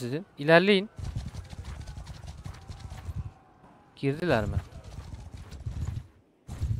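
Horses' hooves trot and thud on soft ground.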